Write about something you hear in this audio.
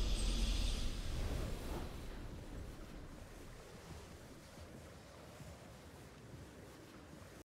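A triumphant game victory jingle rings out and slowly fades away.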